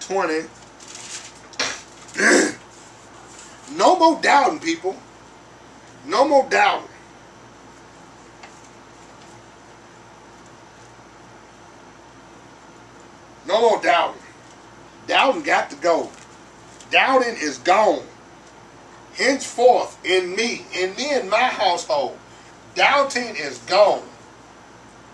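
A man reads aloud calmly in short bursts, close by.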